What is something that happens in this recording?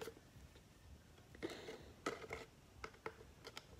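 A plastic bottle crinkles in a hand.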